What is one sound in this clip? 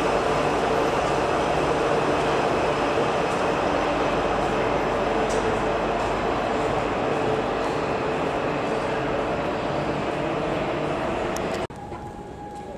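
A subway train rumbles loudly into an echoing station.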